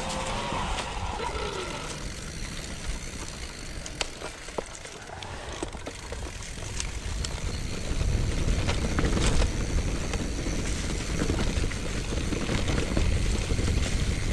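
Bicycle tyres roll and crunch over dry leaves and dirt.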